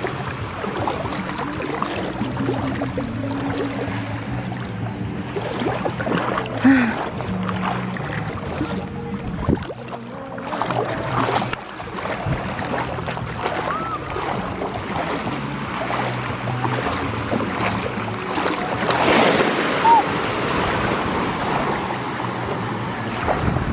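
Feet splash and slosh through shallow water.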